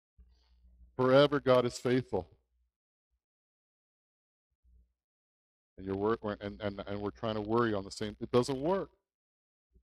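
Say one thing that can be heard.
A middle-aged man speaks calmly through a headset microphone, pausing between phrases.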